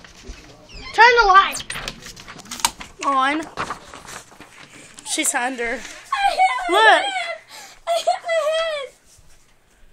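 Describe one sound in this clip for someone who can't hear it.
A young child squeals and whines close by.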